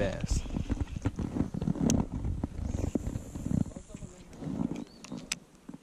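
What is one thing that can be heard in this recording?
A fishing reel whirs and clicks as line is reeled in.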